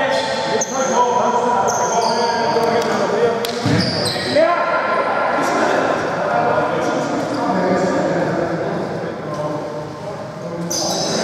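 Young men call out to each other in an echoing hall.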